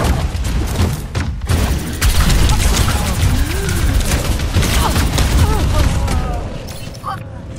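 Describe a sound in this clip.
Rapid gunfire crackles and booms close by.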